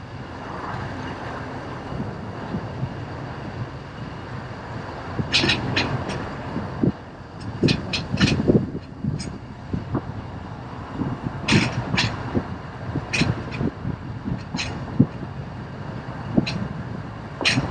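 Car tyres rumble steadily on smooth pavement.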